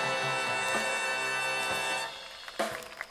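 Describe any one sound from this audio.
A big band plays a sustained final chord.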